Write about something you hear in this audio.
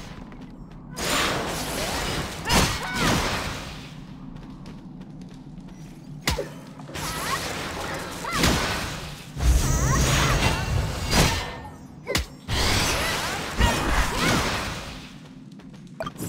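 Magic spell effects whoosh and crackle in bursts.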